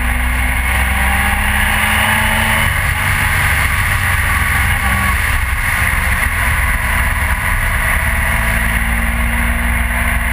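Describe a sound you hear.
Wind rushes loudly past the rider's helmet.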